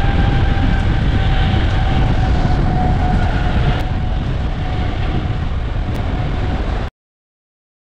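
Wind rushes loudly past a bicycle rider outdoors.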